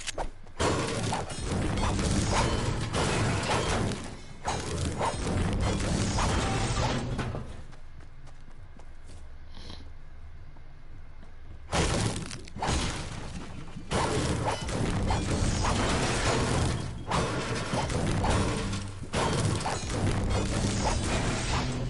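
A pickaxe strikes hard walls again and again.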